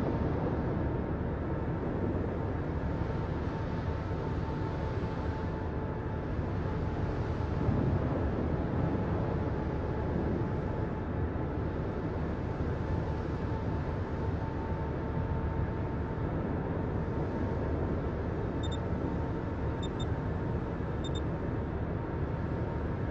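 Water rushes along a ship's hull.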